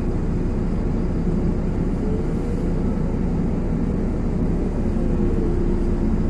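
Tyres hiss on a wet road as cars pass by.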